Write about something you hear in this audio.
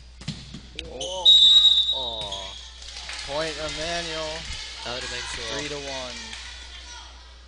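Girls shout and cheer loudly.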